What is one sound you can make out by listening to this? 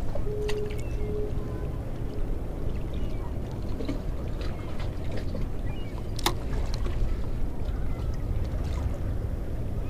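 A reel winds in fishing line with a soft whirr.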